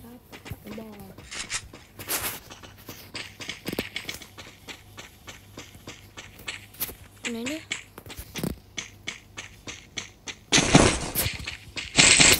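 Footsteps patter quickly over grass and wooden boards.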